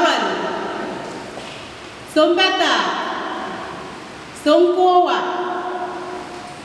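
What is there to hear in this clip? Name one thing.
A woman sings through a microphone in an echoing hall.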